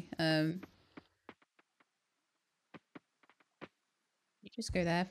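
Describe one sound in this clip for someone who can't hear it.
Soft footsteps tap on dirt.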